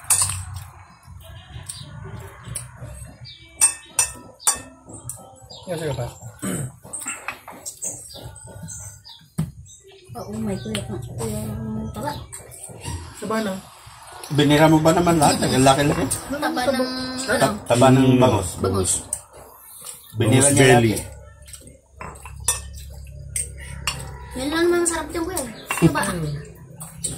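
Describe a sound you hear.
A metal spoon clinks against a bowl.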